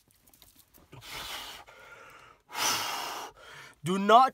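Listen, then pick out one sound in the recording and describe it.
A young man exhales loudly and breathily.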